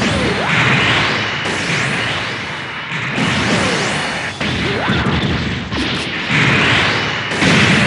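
A laser beam fires with a sharp blast.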